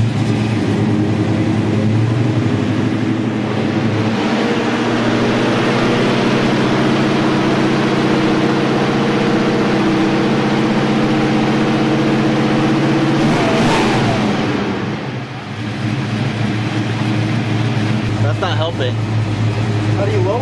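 A big engine idles with a loud, deep rumble.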